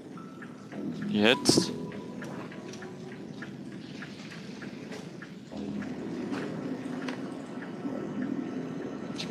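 Soft footsteps pad quietly across a hard floor.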